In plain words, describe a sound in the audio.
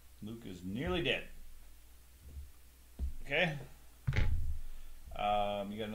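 A small plastic game piece is set down on a table with a light tap.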